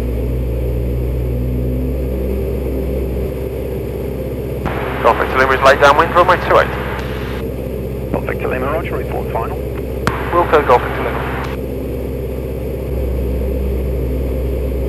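A small plane's engine drones steadily throughout.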